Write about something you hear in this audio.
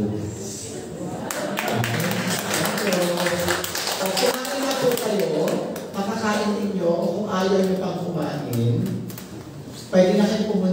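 A middle-aged man speaks steadily through a microphone and loudspeakers in an echoing room.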